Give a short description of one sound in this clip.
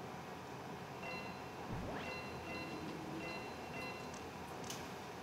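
Short electronic game beeps chirp in a quick pattern.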